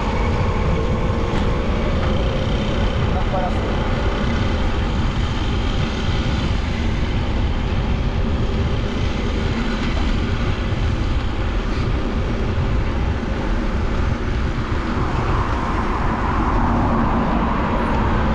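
Bicycle tyres hum along a paved path.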